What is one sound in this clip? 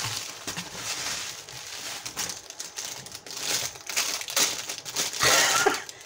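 A middle-aged woman laughs.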